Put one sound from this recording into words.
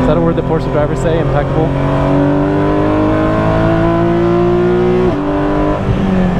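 A race car engine roars loudly from inside the cabin, its pitch climbing steadily before dropping sharply at a gear change.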